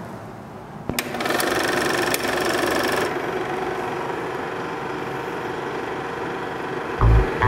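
A film projector whirs and clatters steadily.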